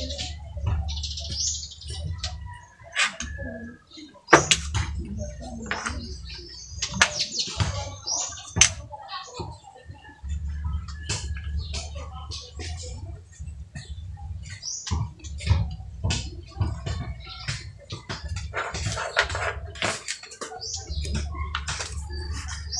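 Plastic game pieces click and tap on a wooden board.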